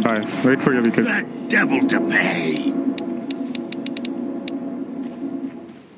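Spells and attacks crackle and clash in a video game.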